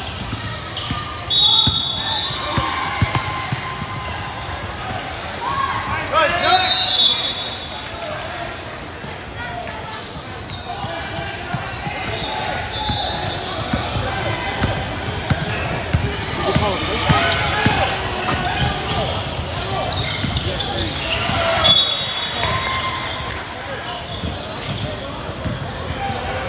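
Spectators chatter and cheer around the court.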